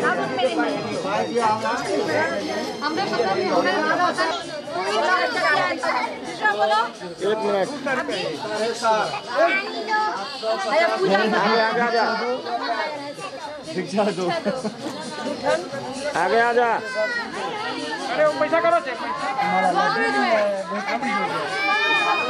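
A group of women sing together loudly nearby.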